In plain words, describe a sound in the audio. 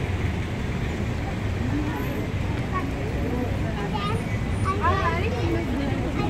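Traffic rumbles steadily along a nearby road.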